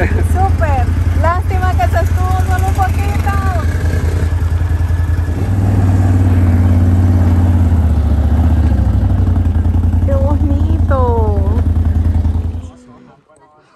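An ATV engine idles and rumbles close by.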